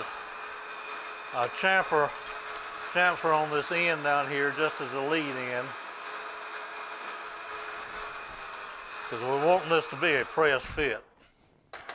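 A lathe hums steadily as it spins, then stops.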